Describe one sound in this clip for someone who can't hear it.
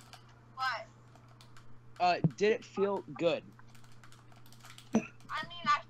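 A teenage boy laughs softly over an online call.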